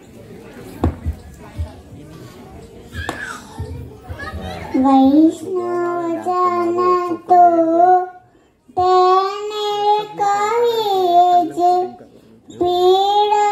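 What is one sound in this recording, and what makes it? A young girl recites loudly through a microphone in an echoing hall.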